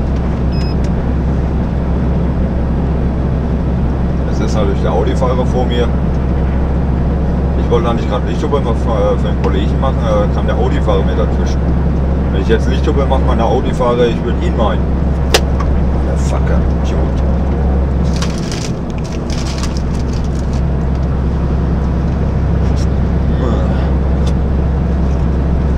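Tyres hum on a motorway under a moving truck.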